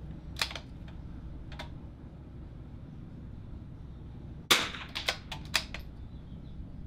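A rifle fires loud, sharp cracking shots outdoors, now and then.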